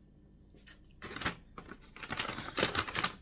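Plastic crinkles and rustles in someone's hands.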